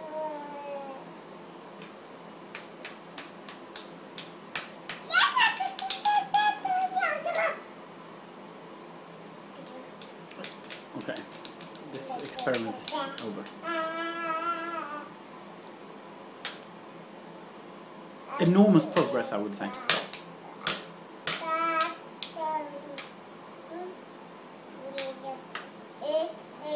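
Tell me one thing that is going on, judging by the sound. A toddler squeals and babbles loudly close by.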